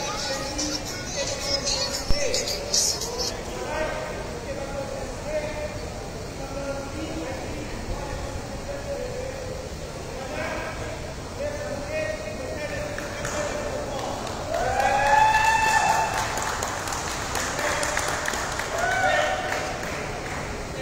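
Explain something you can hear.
Young players chatter and call out to each other in a large echoing hall.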